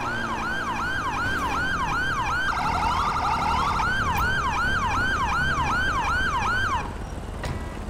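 A police siren wails in fast rising and falling sweeps.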